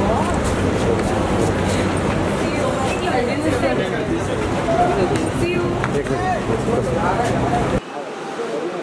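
Several men and women talk and call out at once, close by.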